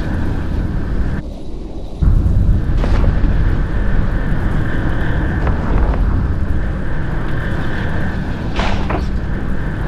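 A low engine rumble drones throughout.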